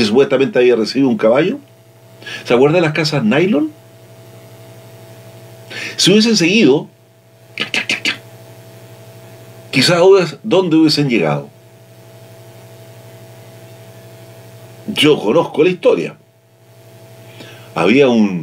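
An elderly man speaks calmly and expressively into a nearby microphone, with pauses between phrases.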